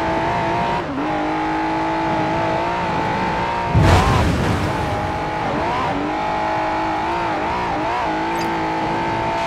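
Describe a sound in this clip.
A car engine roars at high speed, shifting pitch as it changes gear.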